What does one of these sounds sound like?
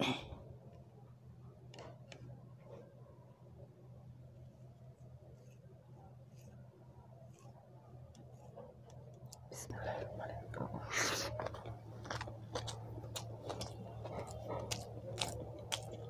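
Fingers squish and mix soft rice on a plate close up.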